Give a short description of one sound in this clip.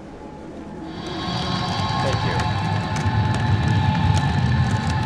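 A magical energy hums and crackles loudly.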